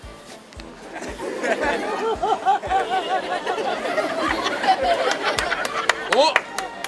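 A large crowd laughs and cheers outdoors.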